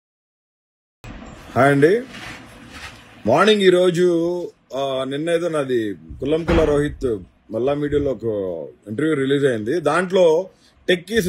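A man speaks calmly and close up into a phone microphone.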